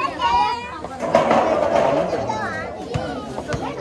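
A ball rattles as it rolls down a corrugated metal sheet.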